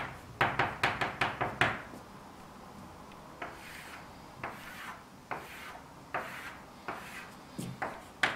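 Chalk taps and scrapes across a blackboard in quick strokes.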